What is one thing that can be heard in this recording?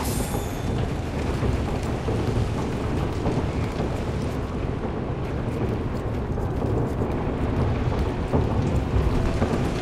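Footsteps thud quickly on wooden stairs.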